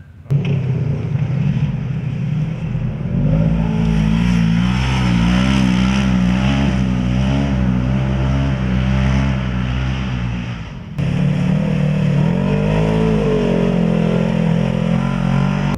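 A buggy engine revs hard and roars.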